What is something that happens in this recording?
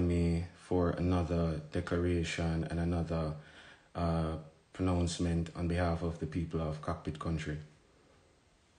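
A man speaks calmly and slowly, close to a microphone.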